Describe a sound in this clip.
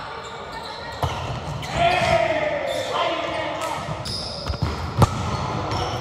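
A volleyball is struck with a sharp smack in an echoing hall.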